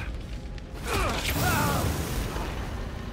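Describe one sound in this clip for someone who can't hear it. Flames burst out with a loud whoosh.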